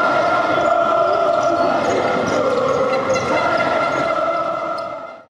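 Young men shout and whoop as they celebrate close by.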